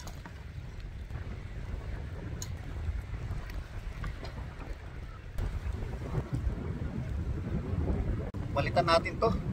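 Choppy water splashes against a small boat.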